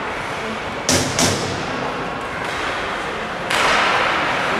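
Hockey sticks smack a puck with sharp cracks.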